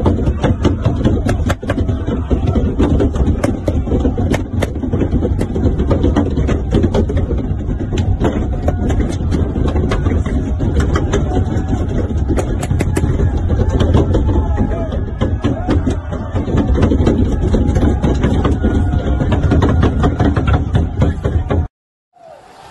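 A large crowd chants and shouts loudly close by.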